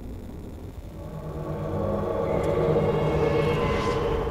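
A magical summoning swells with a rising shimmer.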